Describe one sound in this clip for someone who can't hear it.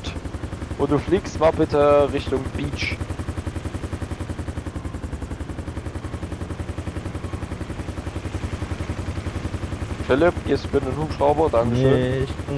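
Helicopter rotor blades thump steadily and rapidly.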